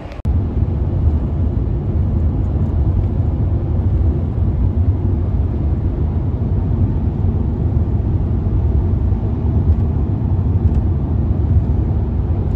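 A car's engine hums steadily, heard from inside the car.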